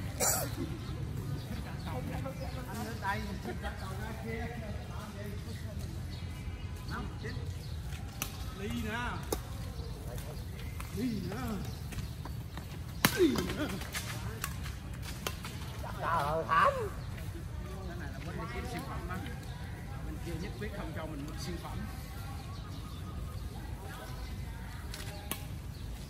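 Badminton rackets hit a shuttlecock with light pops.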